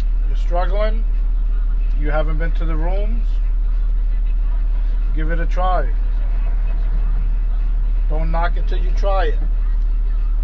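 A man speaks in short phrases with animation, close by.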